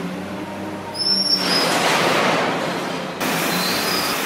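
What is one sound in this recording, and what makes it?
Trash spills from a wheel loader's bucket.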